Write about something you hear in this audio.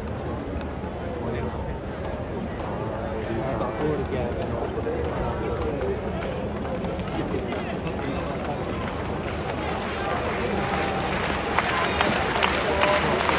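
A large stadium crowd cheers and chatters steadily, swelling toward the end.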